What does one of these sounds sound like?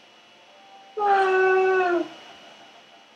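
A video game creature lets out a short, shrill cry that falls in pitch at the end.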